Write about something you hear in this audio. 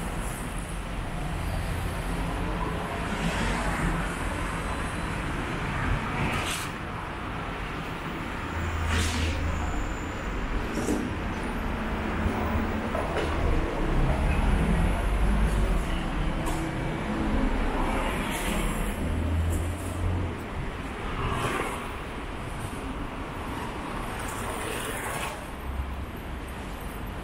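Street traffic murmurs steadily outdoors.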